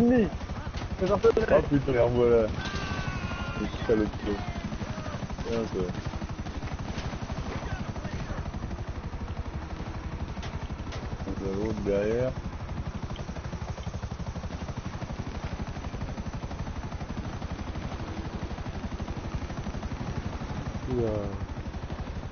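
A helicopter's rotor blades chop steadily and rapidly.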